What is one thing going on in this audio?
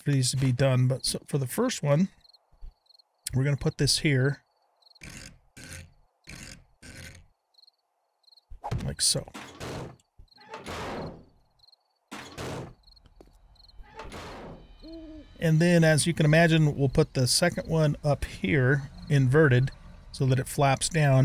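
An elderly man talks with animation into a close microphone.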